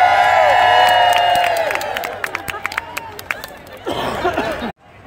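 A crowd claps in scattered bursts.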